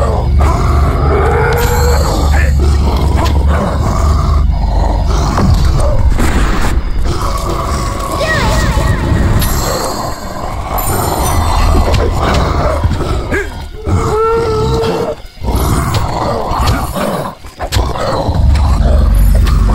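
A sword slashes and clashes in combat.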